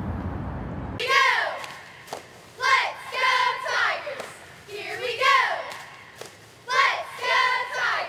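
A young woman talks excitedly and close up.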